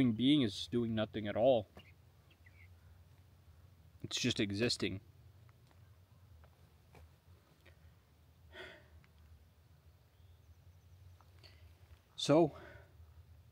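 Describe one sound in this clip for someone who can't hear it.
A young man speaks close by in short, breathless bursts.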